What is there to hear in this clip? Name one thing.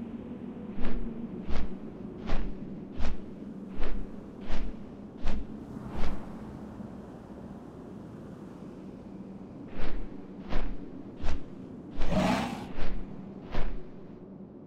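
Large wings flap in steady, heavy beats.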